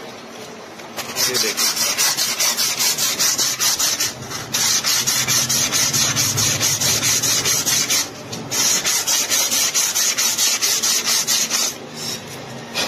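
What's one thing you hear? A tool scrapes rapidly against the inside of a metal wheel hub.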